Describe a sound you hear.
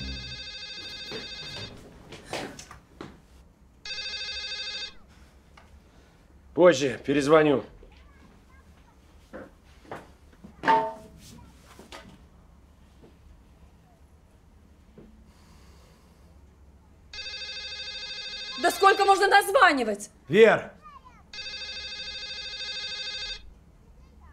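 A phone rings with a repeating electronic ringtone.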